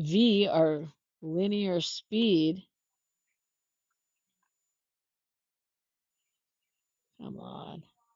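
A woman speaks calmly and close to a microphone, in short phrases.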